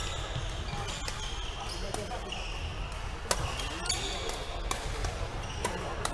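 Badminton rackets strike shuttlecocks with sharp pops in a large echoing hall.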